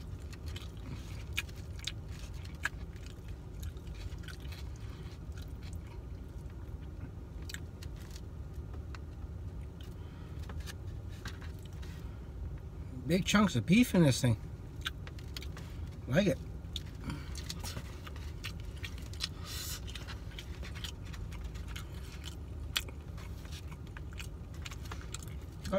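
A fork scrapes and clicks against a plastic food container.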